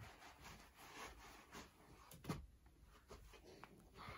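Bedding rustles as a child moves on a bed.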